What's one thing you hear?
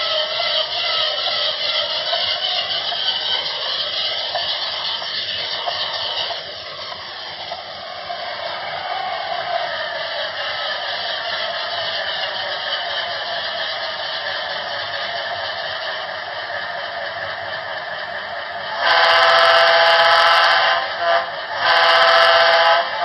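A model diesel locomotive's engine rumbles steadily.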